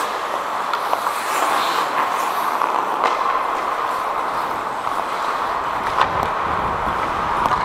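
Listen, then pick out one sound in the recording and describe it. Hockey sticks clack against a puck and the ice.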